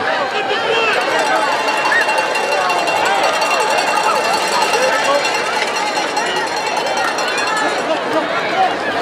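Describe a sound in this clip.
A marching band plays in the stands.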